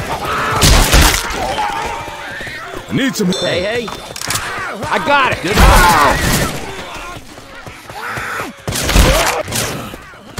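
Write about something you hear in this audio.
A rifle fires loud shots in short bursts.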